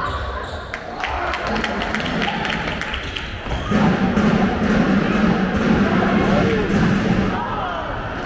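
A crowd of spectators cheers loudly in a large echoing hall.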